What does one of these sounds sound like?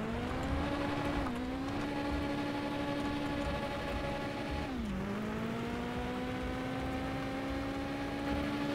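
A car engine hums steadily, dipping briefly as the gears change.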